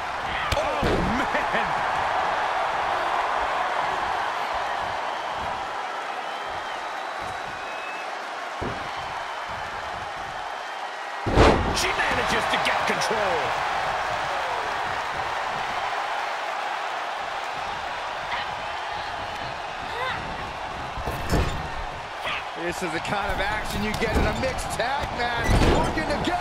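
A large crowd cheers steadily in an arena.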